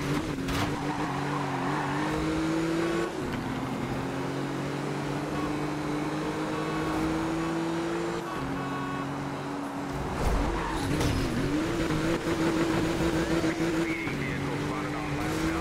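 A sports car engine roars at high revs, shifting up through the gears.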